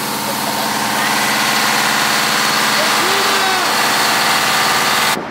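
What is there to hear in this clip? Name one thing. A powerful jet of water hisses as it sprays from a nozzle.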